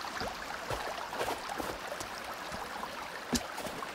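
Footsteps crunch on snow and creak on wooden steps.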